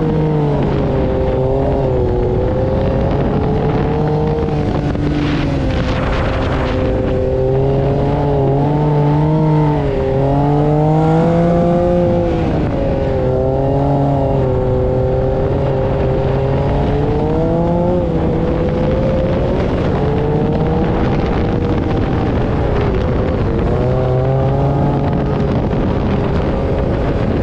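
An engine roars loudly, revving up and down as a buggy drives over sand.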